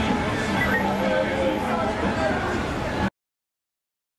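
A fire engine siren wails close by.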